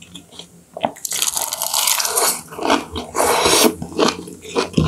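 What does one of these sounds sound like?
A young woman slurps food loudly close to a microphone.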